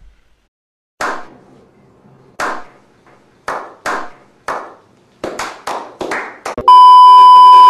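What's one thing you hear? Several men clap their hands.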